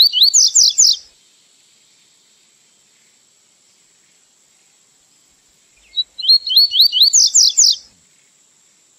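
A small bird sings bursts of quick, rising whistled notes close by.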